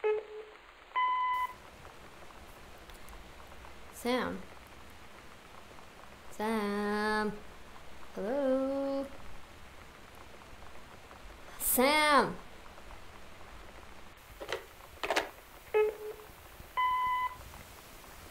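An answering machine gives short electronic beeps.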